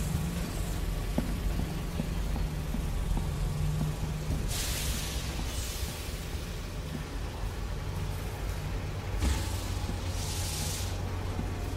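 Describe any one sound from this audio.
Footsteps clank slowly on metal stairs.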